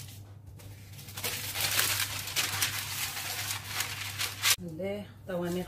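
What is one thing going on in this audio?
Paper rustles and crinkles as it is smoothed flat.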